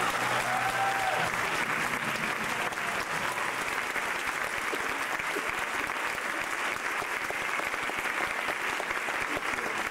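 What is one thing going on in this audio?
A crowd of young performers cheers and shouts loudly in a large echoing hall.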